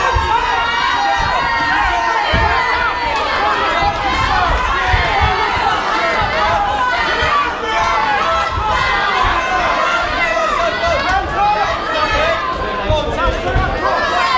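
Boxing gloves thud against bodies in quick bursts.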